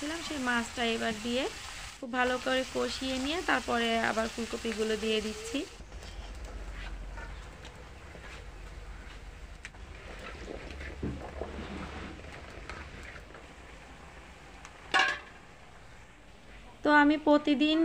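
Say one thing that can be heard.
Oil sizzles and bubbles in a frying pan.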